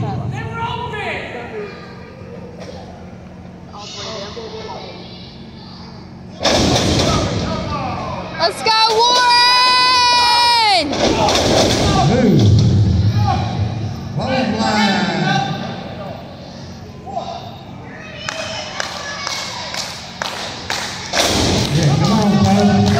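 A small crowd shouts and cheers in an echoing hall.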